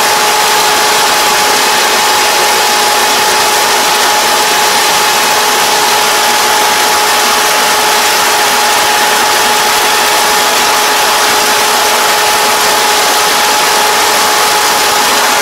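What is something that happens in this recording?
A combine harvester engine roars steadily up close.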